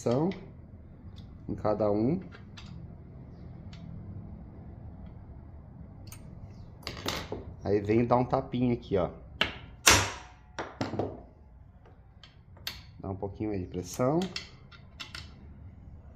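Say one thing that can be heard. Small metal parts clink and click as they are handled.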